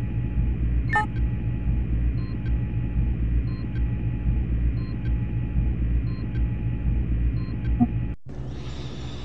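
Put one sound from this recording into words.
A low machine hum drones steadily.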